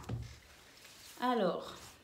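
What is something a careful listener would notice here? Cards are laid down on a table with soft taps.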